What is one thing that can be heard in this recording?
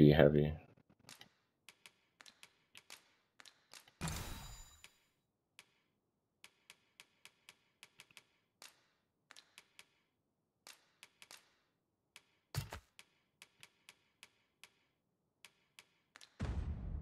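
Soft menu clicks tick repeatedly as a cursor moves through a game's item list.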